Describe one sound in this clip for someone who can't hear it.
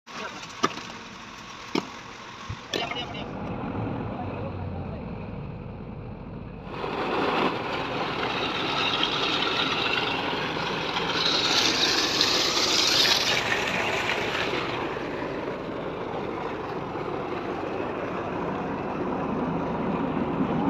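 A drilling rig engine runs steadily.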